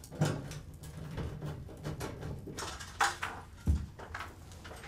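Metal parts knock and clatter.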